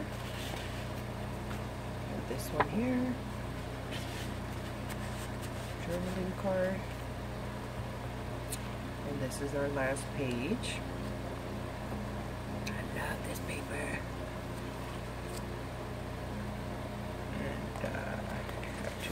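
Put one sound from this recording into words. Stiff paper pages rustle and flap as they are turned by hand.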